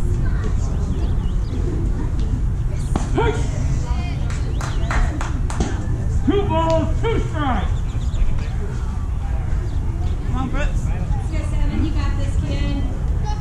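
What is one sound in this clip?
Children shout and cheer from a distance outdoors.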